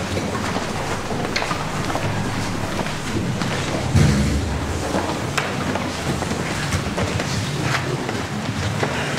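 Many people murmur quietly.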